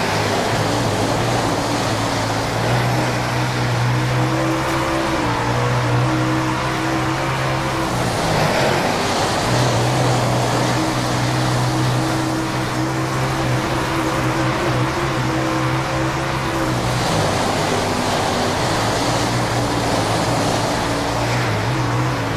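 Tyres skid and spray over loose dirt.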